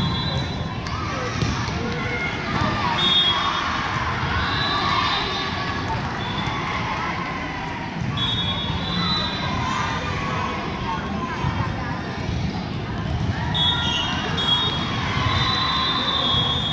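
Shoes squeak sharply on a hard floor.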